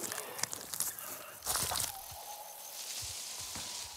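A fruit snaps off its stalk.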